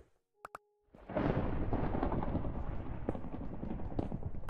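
Thunder roars and rumbles loudly.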